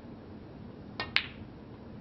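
A snooker cue strikes a ball with a sharp click.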